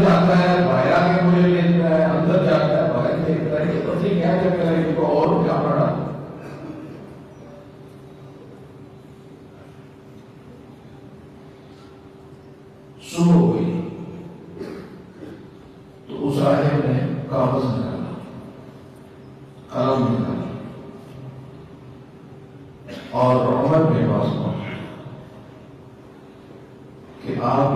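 An elderly man speaks slowly and earnestly into a microphone, with long pauses between phrases.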